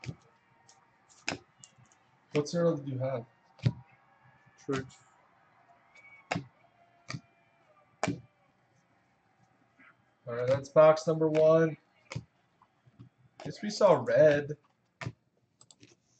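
Cards are flicked and snapped one after another in a hand.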